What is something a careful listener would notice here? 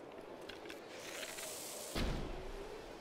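A fire arrow whooshes through the air.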